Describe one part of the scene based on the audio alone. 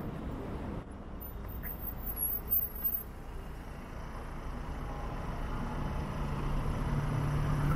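A motorcycle engine hums low and grows louder toward the end.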